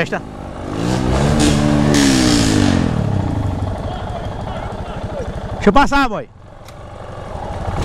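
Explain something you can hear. A dirt bike engine runs close by.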